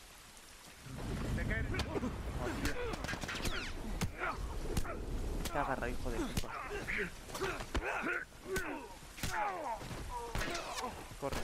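Heavy punches and blows land with dull thuds in a scuffle.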